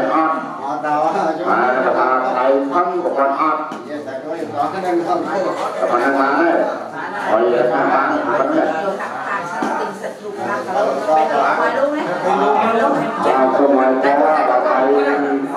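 Men and women talk together close by, with overlapping voices.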